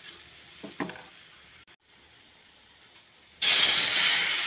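Spices sizzle softly in hot oil in a pan.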